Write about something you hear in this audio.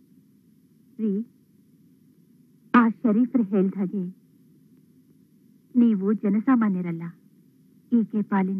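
A woman speaks softly and with emotion, close by, in short bursts.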